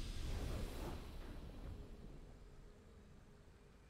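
A triumphant victory chime rings out and slowly fades.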